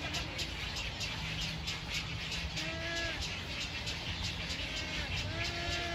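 Twigs rustle as a heron pokes at its nest.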